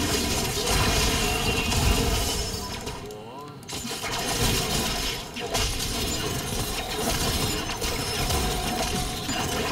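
Game sound effects of spells and clashing weapons play in quick bursts.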